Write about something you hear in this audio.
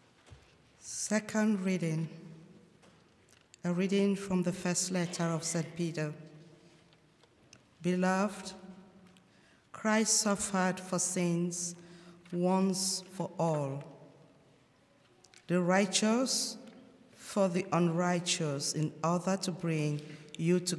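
A woman reads out slowly into a microphone in an echoing hall.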